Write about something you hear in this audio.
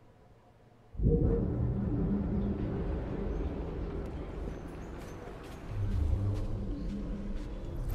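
Footsteps tread on a stone path.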